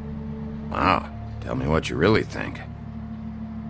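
A man speaks briefly in a low, weary voice.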